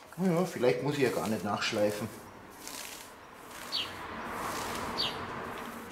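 A brush scrubs across wood.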